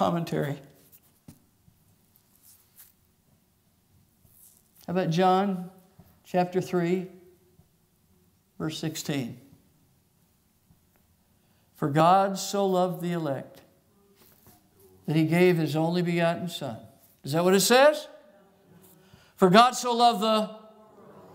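A man speaks slowly and calmly through a microphone, with long pauses, in an echoing hall.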